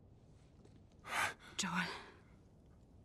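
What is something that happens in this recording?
A man speaks in a low voice, close by.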